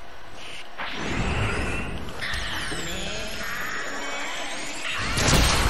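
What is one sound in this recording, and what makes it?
A loud rushing whoosh swells and roars.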